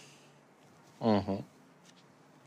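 A young man laughs briefly nearby.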